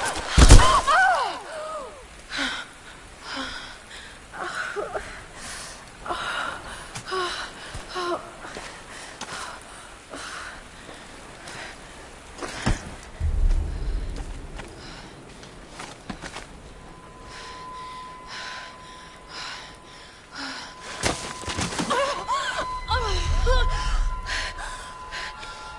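A young woman gasps and groans in pain close by.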